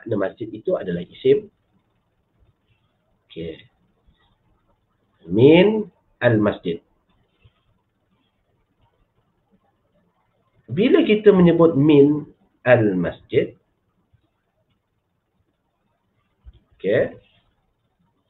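A man speaks calmly in short phrases through a headset microphone on an online call.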